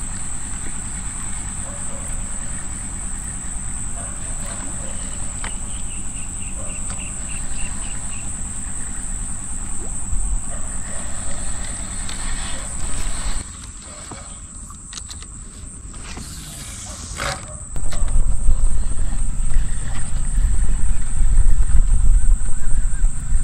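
Water splashes softly as a fish stirs at the surface of a shallow stream.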